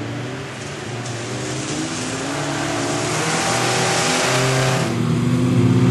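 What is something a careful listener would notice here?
Tyres hiss on a wet track.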